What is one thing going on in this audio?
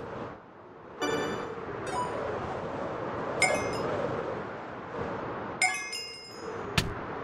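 A bright chime rings out several times.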